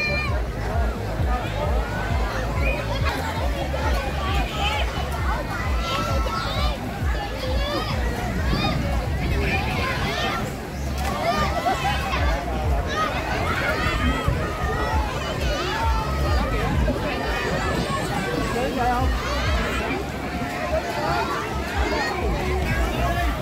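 A crowd of children and adults chatter and shout outdoors.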